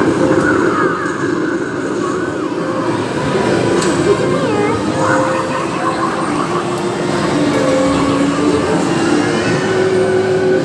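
An arcade game plays bursts of electronic sound effects.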